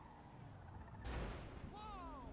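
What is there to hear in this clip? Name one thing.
A car crashes into another car with a loud thud.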